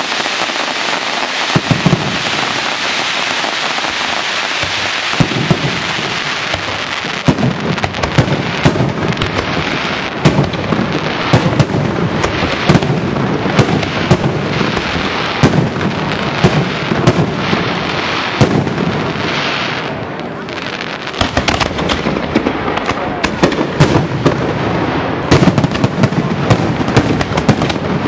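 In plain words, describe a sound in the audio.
Fireworks burst with loud bangs and cracks, one after another.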